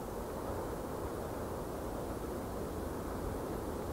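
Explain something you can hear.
Leaves rustle in the wind.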